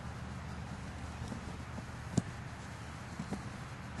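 A body thuds onto grass.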